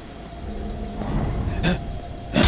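A zombie groans nearby.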